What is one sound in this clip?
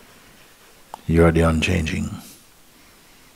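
A middle-aged man speaks calmly and briefly, close to a microphone.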